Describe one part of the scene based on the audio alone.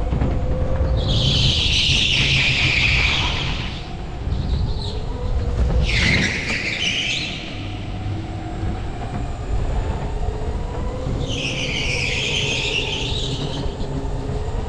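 Kart tyres screech in bursts on the turns.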